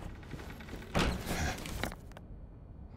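A sheet of paper rustles as it is unfolded.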